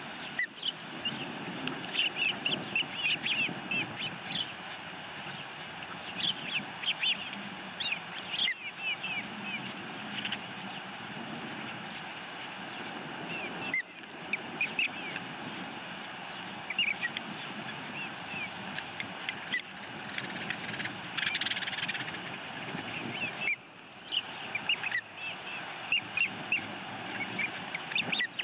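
Young birds chirp and cheep repeatedly, high and shrill.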